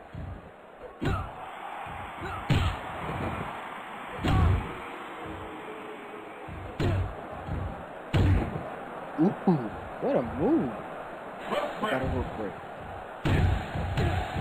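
Bodies thud heavily onto a wrestling mat.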